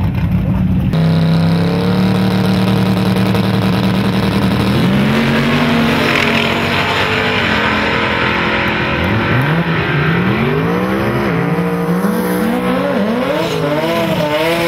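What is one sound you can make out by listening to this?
Two race cars' engines roar as they launch and speed away.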